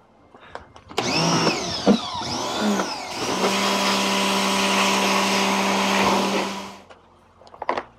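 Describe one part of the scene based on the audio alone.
A pressure washer motor runs loudly and water hisses in a strong spray.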